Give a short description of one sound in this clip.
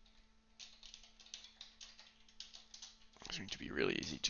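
Keyboard keys click quickly as someone types.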